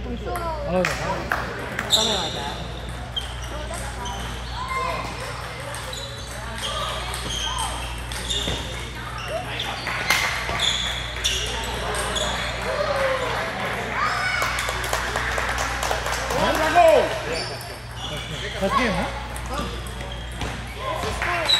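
Ping pong balls click on paddles and tables in a large echoing hall.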